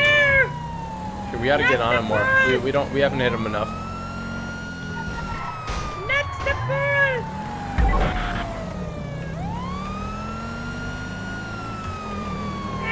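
A police siren wails, slowly rising and falling.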